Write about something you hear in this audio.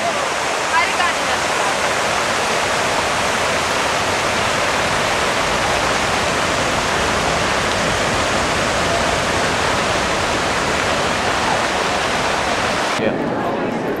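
Fountain water splashes and rushes steadily outdoors.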